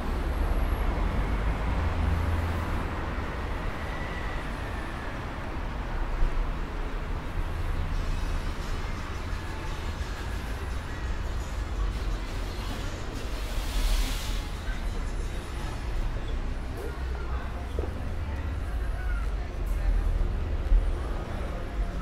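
City traffic rumbles steadily nearby, outdoors on a street.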